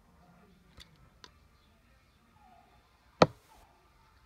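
A hard plastic case knocks and clicks as it is handled.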